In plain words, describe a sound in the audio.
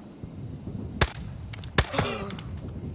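A rifle fires two sharp, loud shots.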